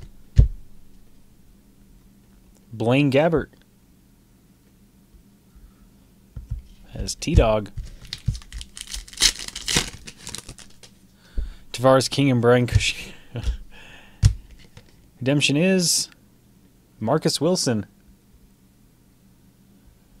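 Trading cards slide and rustle against each other in hands, close by.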